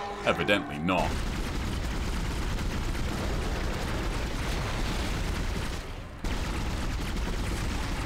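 A monster shrieks and thrashes close by.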